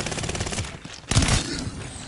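Gunshots crack in quick bursts.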